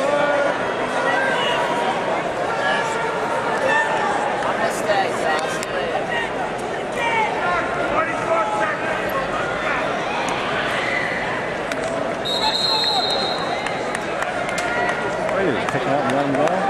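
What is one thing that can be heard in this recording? A crowd of spectators shouts and cheers in a large echoing arena.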